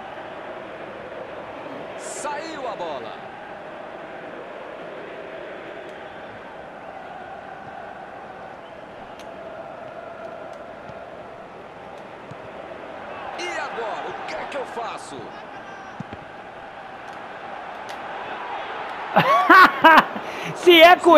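A stadium crowd murmurs and cheers steadily.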